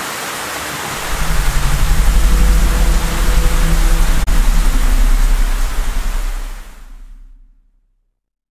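A huge craft hums deeply overhead.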